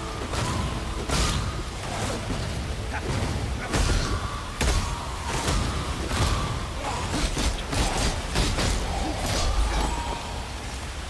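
Fiery spells burst and crackle in rapid blasts.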